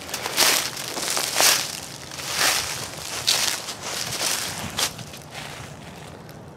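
Footsteps crunch through dry leaves, close by.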